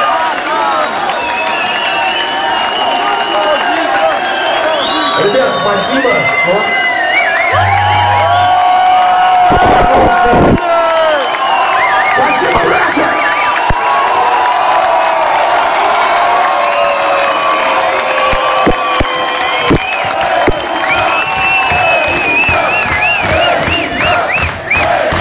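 A crowd whistles shrilly again and again.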